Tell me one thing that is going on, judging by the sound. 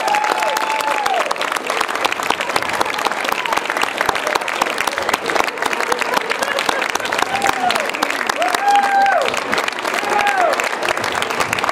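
Audience members cheer and whistle.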